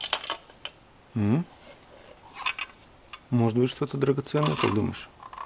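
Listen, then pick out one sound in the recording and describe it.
Small metal objects rattle inside a plastic box.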